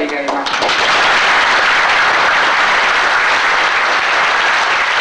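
A large audience claps steadily in a big room.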